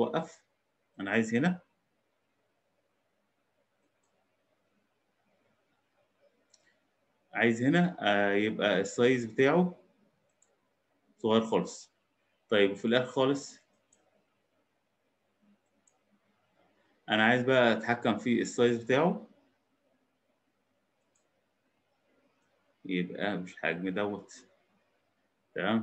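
A man speaks calmly through a computer microphone, in short bursts with pauses.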